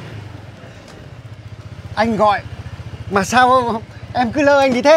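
A motor scooter engine idles with a low putter.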